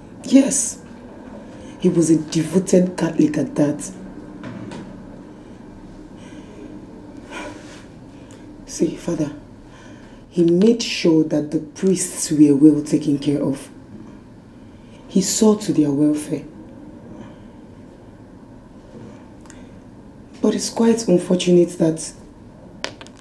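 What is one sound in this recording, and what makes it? A woman speaks nearby, pleading and upset.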